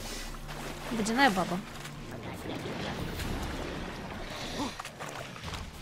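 A creature snarls and growls.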